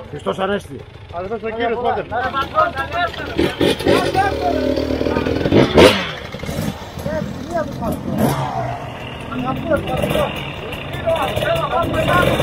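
Motorcycle engines idle nearby.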